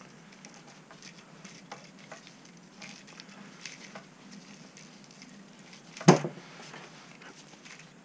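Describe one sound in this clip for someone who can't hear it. Small plastic parts click and tap close by.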